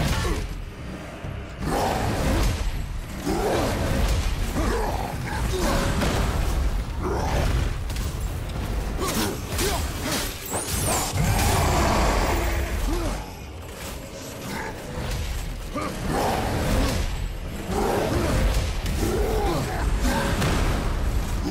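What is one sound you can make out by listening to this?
Heavy blows land with deep thuds and crashes.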